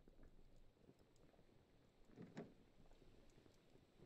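A wooden chest is set down with a soft knock.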